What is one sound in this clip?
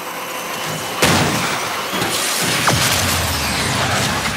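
A car crashes through glass with a loud bang.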